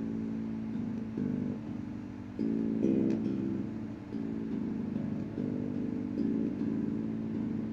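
An electric bass guitar plays a steady line of low notes, close by.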